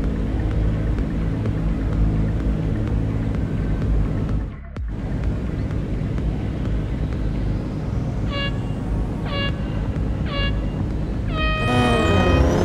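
Race car engines idle with a low rumble.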